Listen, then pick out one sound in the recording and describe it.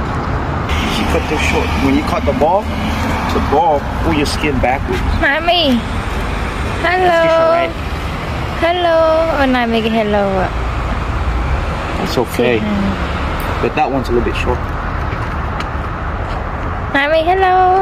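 A man talks playfully in a high, sing-song voice close by.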